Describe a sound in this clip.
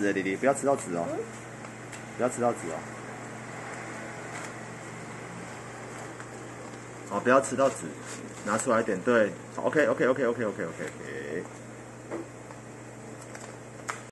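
A paper bag crinkles and rustles.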